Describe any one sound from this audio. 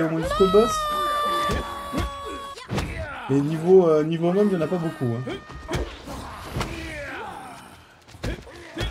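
Blows land with sharp smacks in quick succession.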